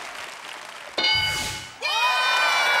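An electronic chime rings out.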